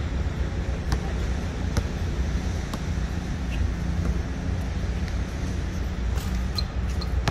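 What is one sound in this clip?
A basketball bounces on hard court pavement outdoors.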